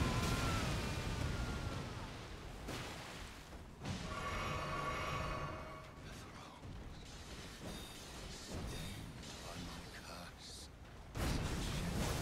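Lightning cracks sharply.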